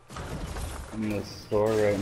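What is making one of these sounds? A pickaxe swings with a sharp whoosh.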